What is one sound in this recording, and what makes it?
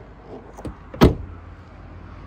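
A car door slams shut nearby.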